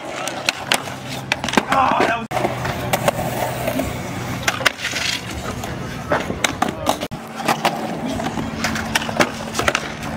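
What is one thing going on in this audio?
Skateboard wheels roll and grind on concrete.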